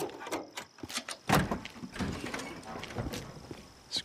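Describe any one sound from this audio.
A car hood clunks open with a metallic thud.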